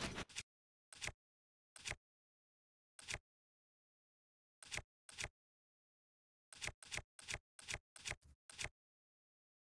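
Short soft clicks tick one after another as a menu selection moves.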